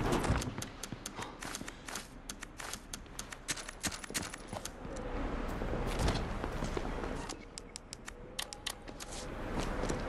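Menu clicks tick quickly.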